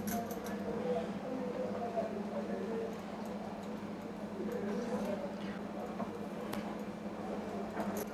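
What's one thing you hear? A knife cuts through soft dough with faint taps on a hard surface.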